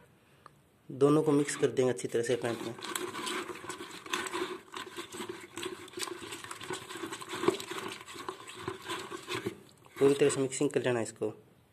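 A hand squelches and stirs thick paste in a plastic bucket.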